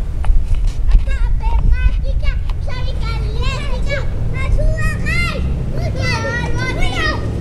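Young children squeal and shout excitedly.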